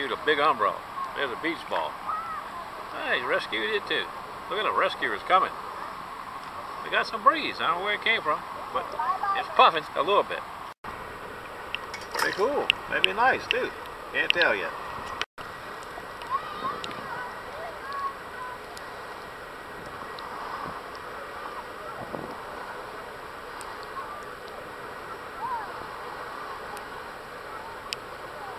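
Small waves lap and splash close by.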